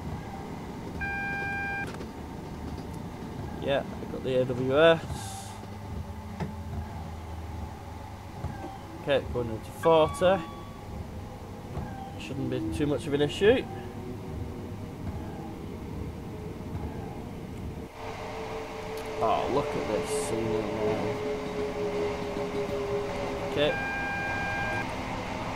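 A warning tone beeps in the train cab.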